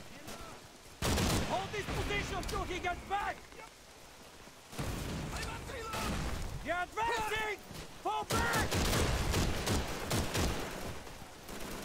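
A machine gun fires loud bursts.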